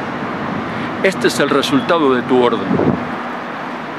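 An elderly man speaks earnestly into a microphone close by.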